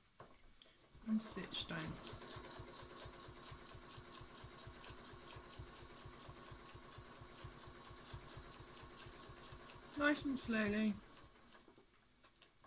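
A sewing machine whirs steadily, stitching fast.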